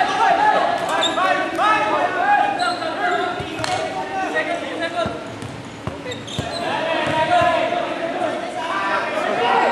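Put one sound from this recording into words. Footsteps patter as players run across the court.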